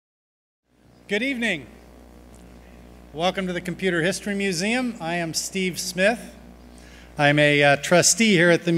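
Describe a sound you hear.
A man speaks calmly into a microphone, heard over loudspeakers in a large hall.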